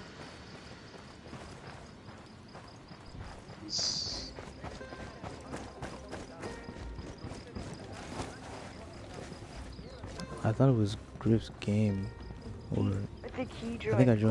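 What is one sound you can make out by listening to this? Footsteps crunch on gravel and then tap on a hard floor.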